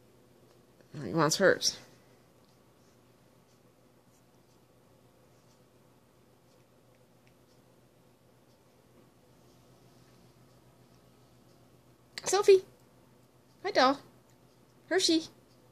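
A small dog whines in short high bursts.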